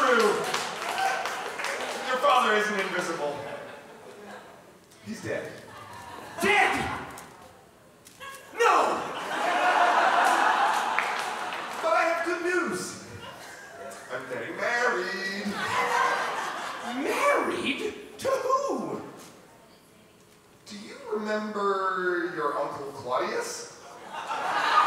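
A young man speaks into a microphone over loudspeakers, answering.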